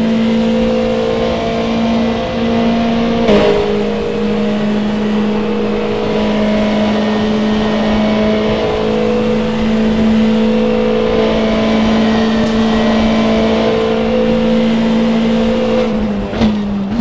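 A racing car engine roars steadily at high revs and shifts up a gear.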